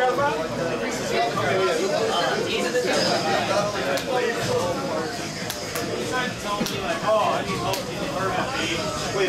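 Punches and kicks thud and smack from a fighting game played through loudspeakers.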